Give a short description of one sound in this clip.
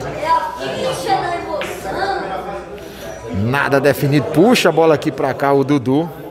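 Billiard balls click together on a pool table.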